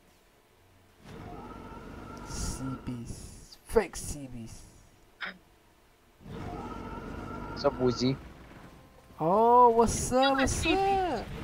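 Fiery blasts whoosh and roar in bursts.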